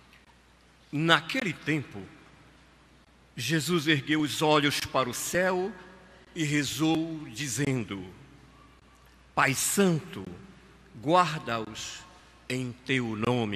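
A middle-aged man reads out into a microphone, heard through loudspeakers.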